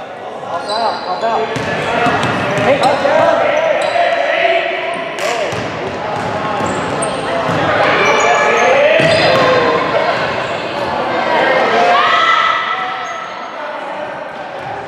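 Young girls shout and call out during play, echoing in a large hall.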